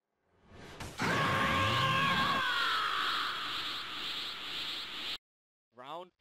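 A powerful energy blast roars and bursts.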